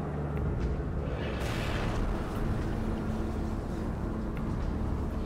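Jet engines roar as a craft lifts off.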